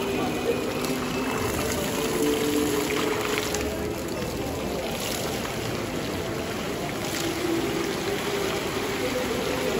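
Water splashes steadily from a fountain into a basin.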